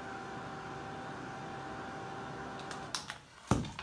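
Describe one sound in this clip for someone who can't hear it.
A hair dryer blows with a steady whirring hum, then switches off.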